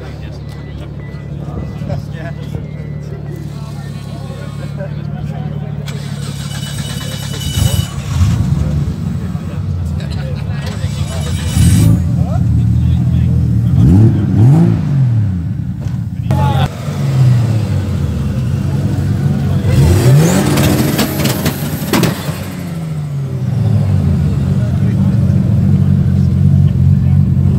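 A car engine idles with a deep, rumbling exhaust burble.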